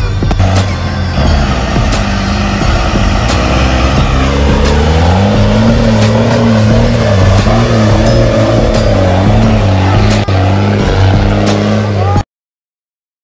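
A tow truck engine idles with a low rumble.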